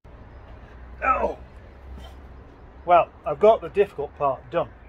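An older man talks calmly close by.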